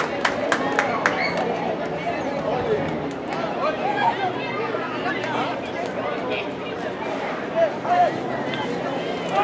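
Young men shout and chatter outdoors.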